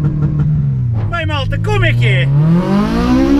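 A young man speaks excitedly inside a car.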